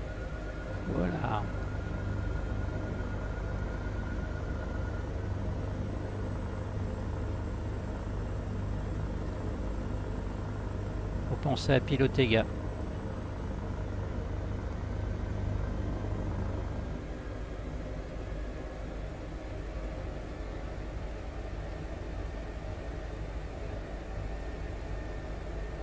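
A helicopter engine and rotor drone steadily from inside the cabin.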